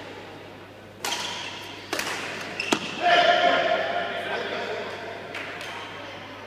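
Badminton rackets strike a shuttlecock with sharp smacks in a large echoing hall.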